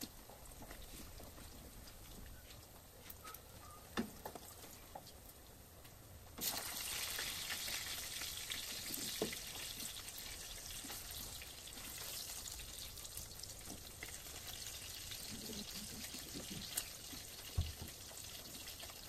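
A spatula scrapes and clinks against a pan.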